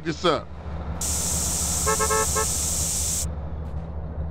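A spray can hisses steadily.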